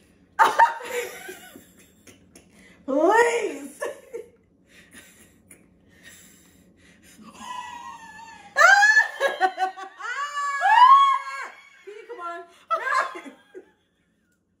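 A young woman laughs loudly close to a microphone.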